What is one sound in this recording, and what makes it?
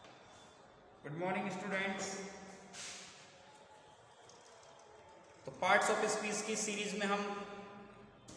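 A young man speaks into a close microphone in drawn-out phrases.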